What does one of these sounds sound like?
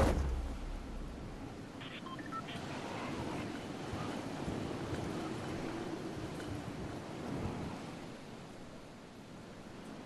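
Wind rushes steadily past a glider descending through the air.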